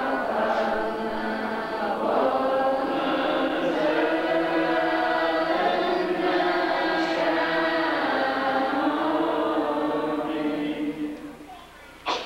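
A group of men chant together in unison.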